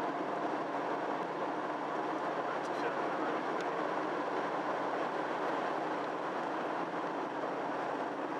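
An oncoming car passes by.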